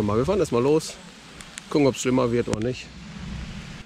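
A middle-aged man speaks close up, calmly and directly.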